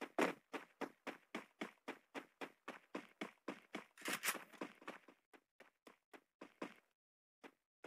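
Quick footsteps run in a steady rhythm.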